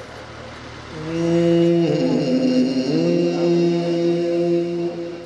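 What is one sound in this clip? A man chants in a long, drawn-out melodic voice through loudspeakers.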